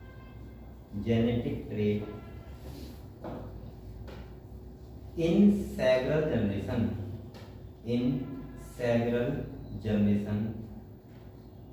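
A young man speaks calmly in short phrases in a room with a slight echo.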